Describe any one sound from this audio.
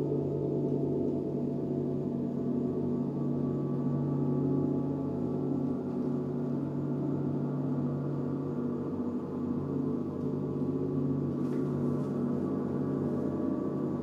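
Large gongs hum and shimmer in a deep, steady, swelling drone.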